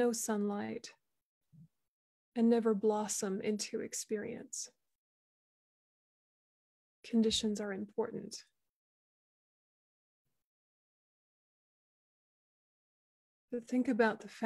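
A young woman speaks calmly and slowly with long pauses, heard through an online call.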